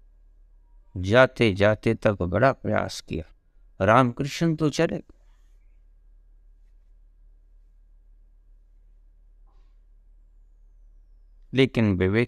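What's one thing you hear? An elderly man speaks calmly and close up, in short bursts with pauses.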